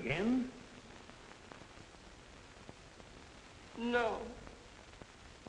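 A woman speaks a few short words quietly, close by.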